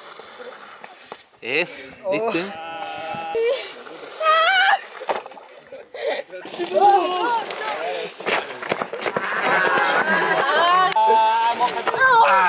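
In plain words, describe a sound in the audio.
People slide down a rock slope with a scraping sound.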